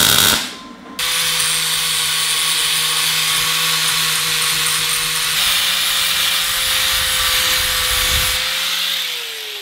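An angle grinder whines steadily as it grinds metal.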